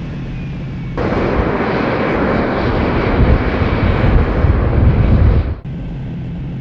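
A jet engine roars loudly as a plane takes off.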